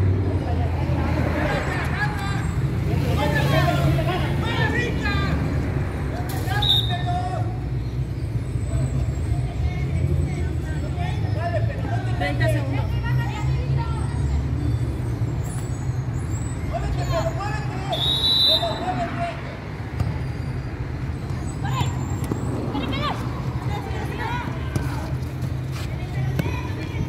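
Young women shout and call out to each other across an open pitch.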